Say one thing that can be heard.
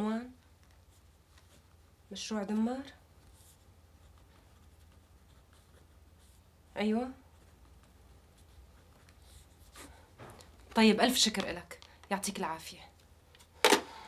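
A woman speaks calmly into a phone, close by.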